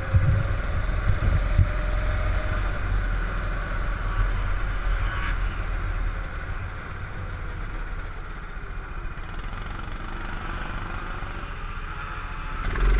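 A go-kart engine buzzes loudly close by, slowing down as the kart comes to a stop.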